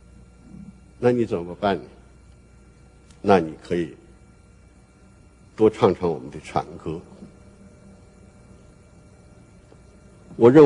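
An elderly man speaks slowly and deliberately through a microphone, with pauses between phrases.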